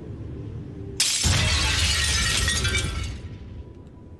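Glass shatters loudly.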